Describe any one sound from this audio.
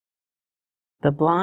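A woman speaks calmly and clearly.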